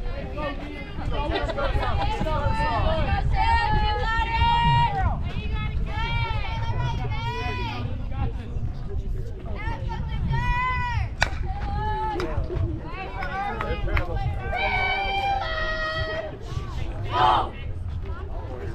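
Young women chant and cheer loudly nearby.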